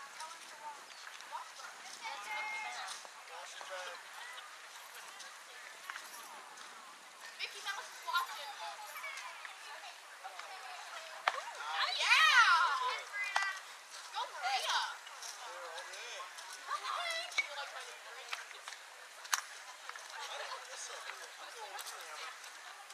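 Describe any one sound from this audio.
Young girls shout and cheer outdoors across an open field.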